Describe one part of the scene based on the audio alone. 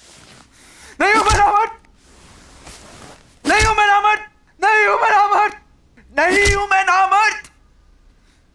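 A young man shouts in anguish close by.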